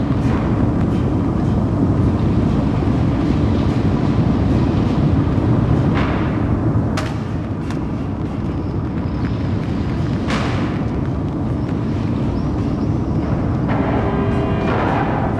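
Heavy machinery rumbles low and steady.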